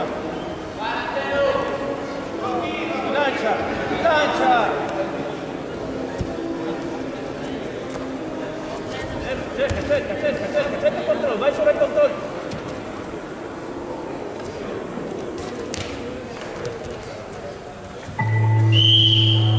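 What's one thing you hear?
Wrestlers' bodies slap together as they grapple.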